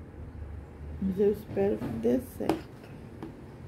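A woman speaks briefly and calmly, close by.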